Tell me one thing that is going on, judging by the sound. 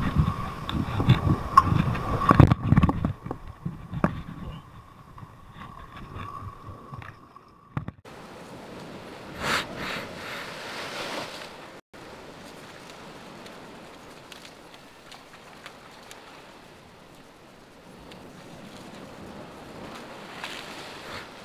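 Waves crash and wash against rocks outdoors.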